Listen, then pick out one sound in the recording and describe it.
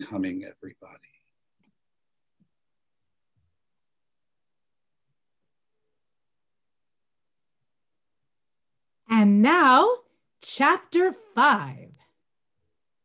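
An older man speaks over an online call, pausing between short phrases.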